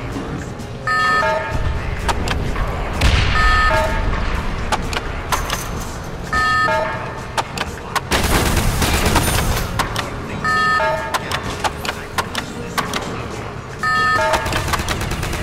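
Short electronic menu beeps sound in quick bursts.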